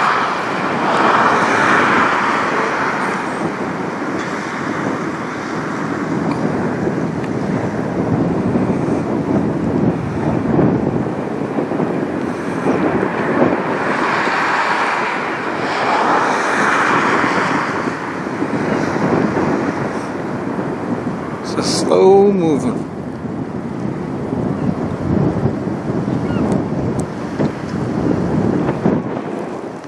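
A large ship's engine rumbles low and steady across the water.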